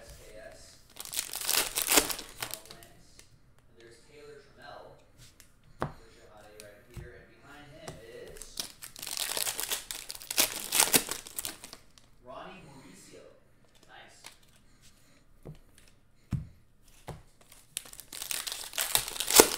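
Plastic wrappers crinkle and tear as packs are opened.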